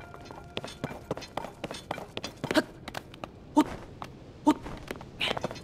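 Quick footsteps and hands scrape and tap on stone.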